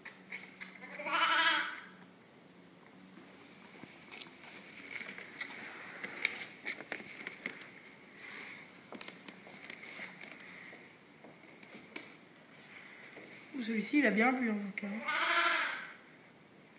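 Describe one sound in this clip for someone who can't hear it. A lamb bleats loudly nearby.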